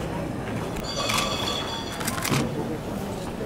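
Small bells jingle briefly.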